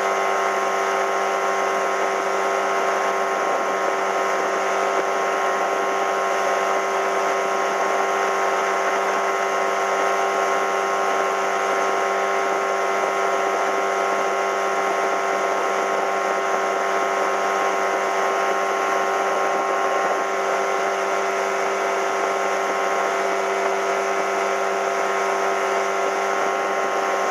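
A boat's outboard motor drones steadily at high speed.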